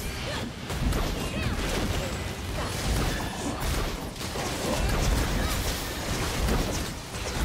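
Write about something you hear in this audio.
Game spell effects crackle and boom in a busy fight.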